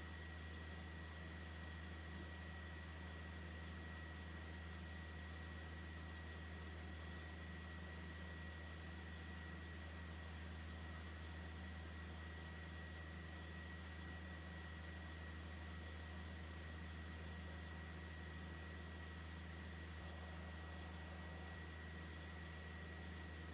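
An arcade machine hums steadily.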